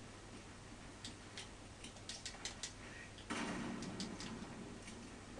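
Rifle shots crack loudly through a television speaker.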